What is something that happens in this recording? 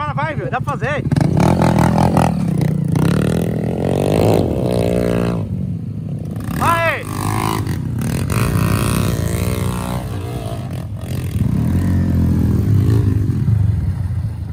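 Dirt bike engines rev hard as riders climb a steep dirt bank.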